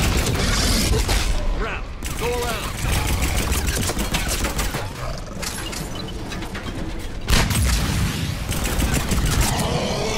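A large creature roars and growls.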